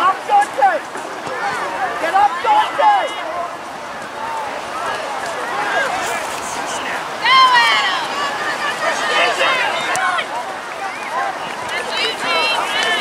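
Young players shout and call to one another across an open field.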